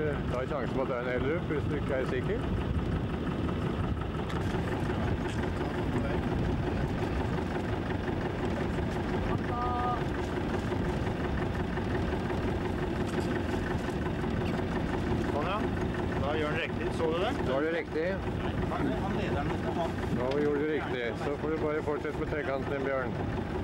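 Small waves slap against a boat's hull.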